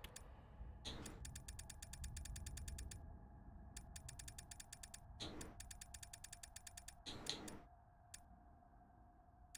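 Menu clicks tick rapidly in quick bursts.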